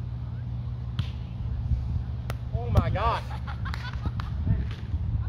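A volleyball is struck with hands a few times.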